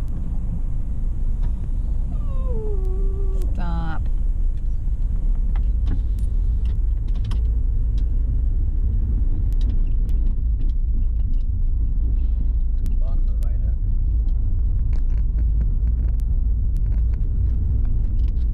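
A car engine hums steadily with low road rumble from inside the cabin.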